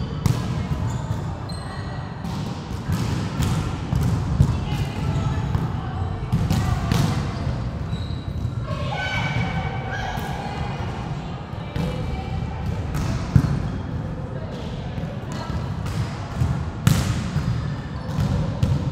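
A volleyball is struck with sharp thuds that echo through a large hall.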